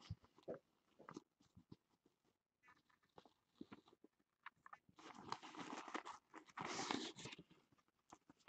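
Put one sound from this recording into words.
A cloth pouch rustles as it is handled.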